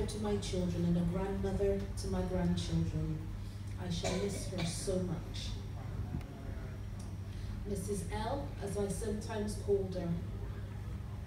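A woman speaks into a microphone over loudspeakers in an echoing hall.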